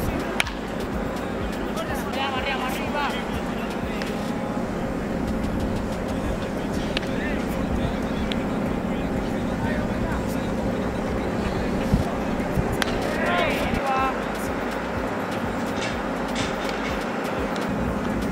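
Spectators murmur in the background outdoors.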